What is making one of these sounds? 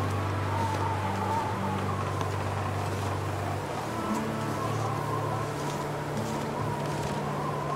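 Wind blows steadily across open snow.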